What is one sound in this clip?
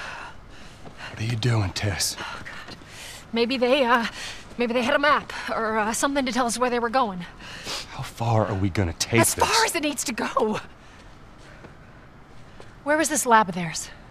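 A woman speaks and strains with effort.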